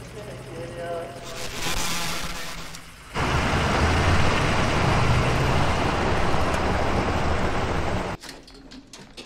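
A truck engine rumbles as the truck drives along.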